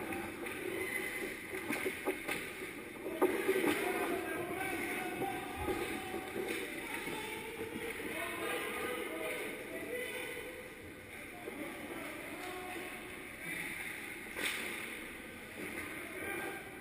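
Young children shout and call out in a large echoing rink.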